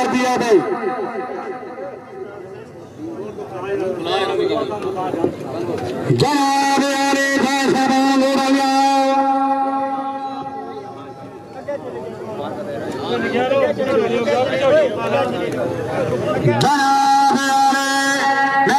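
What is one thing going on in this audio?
A man speaks loudly through a loudspeaker, drawing out long chanted calls.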